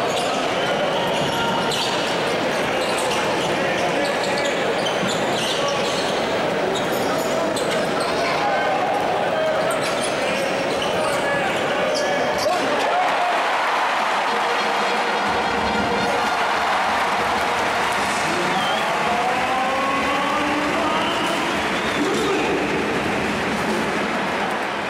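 A large crowd cheers and chatters loudly in an echoing arena.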